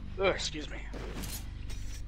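A sword swishes sharply through the air.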